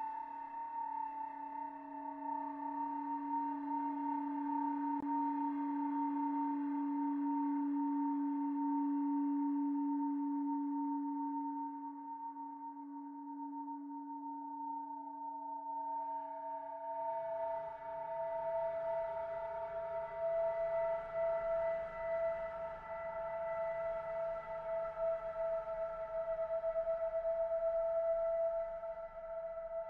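A synthesizer plays steady droning tones that shift in pitch midway.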